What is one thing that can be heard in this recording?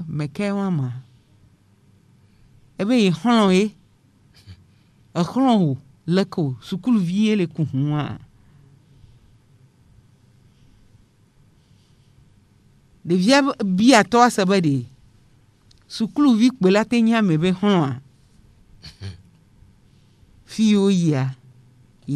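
A middle-aged woman speaks calmly and closely into a microphone, with pauses between phrases.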